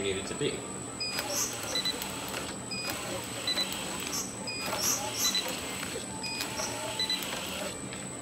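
A machine beeps briefly at regular intervals.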